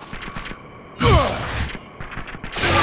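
A gun fires a blast.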